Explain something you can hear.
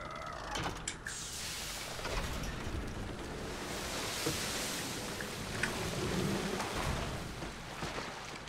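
Water gushes and sloshes out of a tub.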